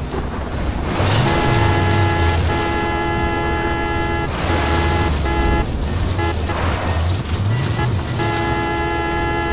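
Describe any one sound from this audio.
A car engine idles with a steady hum.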